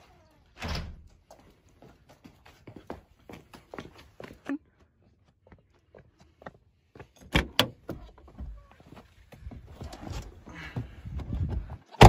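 A young person talks close by.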